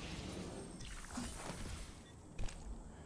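A shimmering whoosh rises as a game character is revived.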